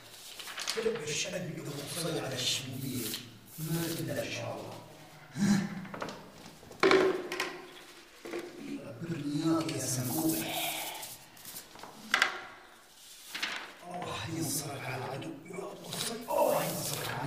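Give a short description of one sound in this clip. Paper rustles and crinkles as a sheet is pressed flat against a wall.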